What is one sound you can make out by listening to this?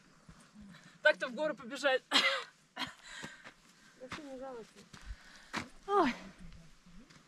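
A young woman laughs and calls out close by.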